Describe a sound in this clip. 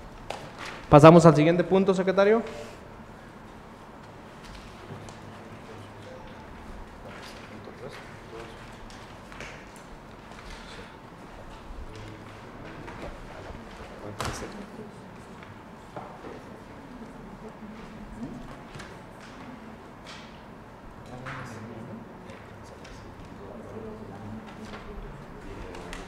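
A man speaks loudly through a microphone, then goes on talking quietly.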